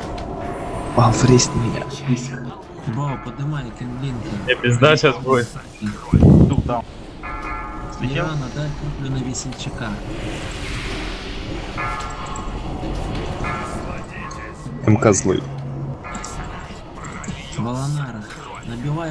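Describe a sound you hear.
Magic spells whoosh and chime in a fantasy battle.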